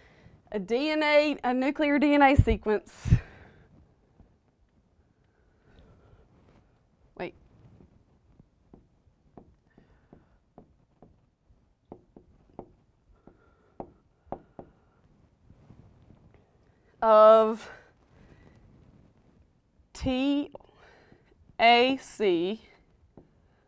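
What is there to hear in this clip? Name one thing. A woman speaks calmly and clearly, as if explaining.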